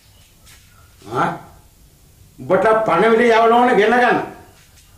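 An elderly man speaks loudly and with animation nearby.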